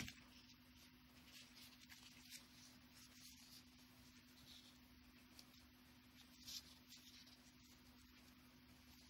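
Ribbon rustles softly as fingers fold and handle it.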